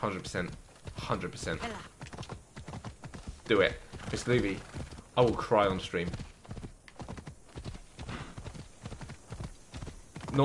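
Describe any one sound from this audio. Horse hooves clop quickly on rocky ground.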